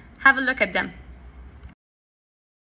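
A woman speaks briefly and warmly, close to a microphone.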